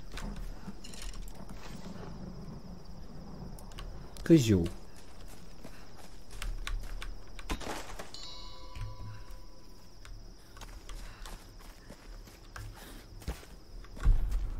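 Footsteps crunch through leaves and undergrowth.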